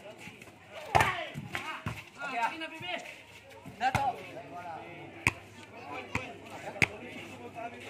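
A hand strikes a volleyball outdoors.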